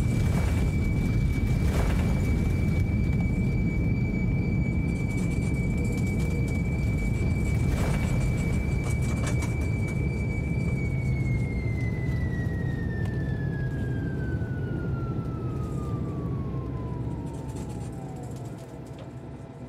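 A jet engine whines steadily, then its pitch slowly winds down.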